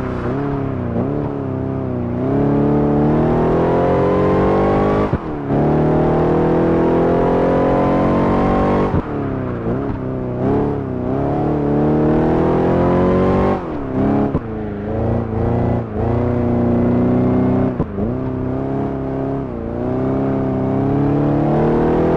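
A supercharged V8 sports car engine revs hard as it accelerates through the gears.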